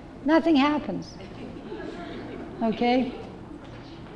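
An elderly woman speaks into a microphone.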